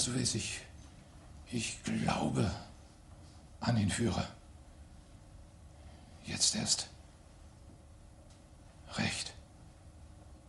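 A middle-aged man speaks slowly and gravely in short phrases, close by.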